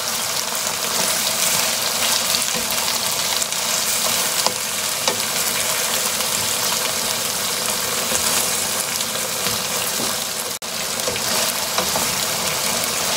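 Chicken sizzles loudly in a hot frying pan.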